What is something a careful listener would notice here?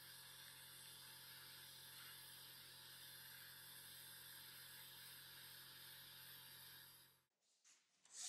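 A sandblasting nozzle hisses steadily against metal.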